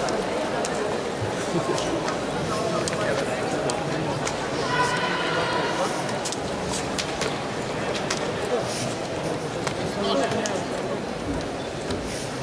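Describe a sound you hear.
Karate suits snap sharply with quick strikes.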